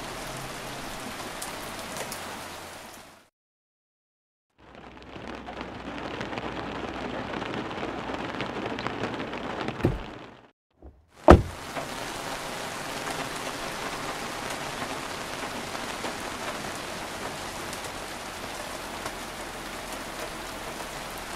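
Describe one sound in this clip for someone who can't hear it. Wind blows steadily outdoors.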